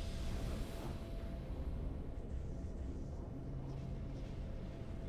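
Triumphant game victory music plays with a deep swelling rumble.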